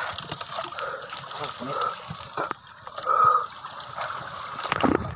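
Water splashes and churns as a net full of fish is hauled out of the sea.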